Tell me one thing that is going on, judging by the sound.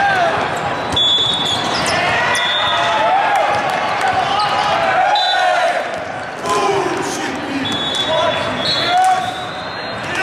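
Sneakers squeak on a sports court floor.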